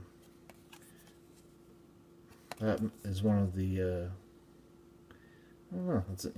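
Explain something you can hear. Trading cards rustle and slide softly between fingers.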